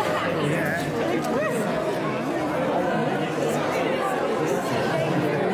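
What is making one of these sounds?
A crowd of men and women sings together nearby.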